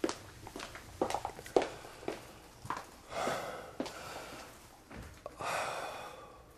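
A middle-aged man breathes heavily and groans weakly.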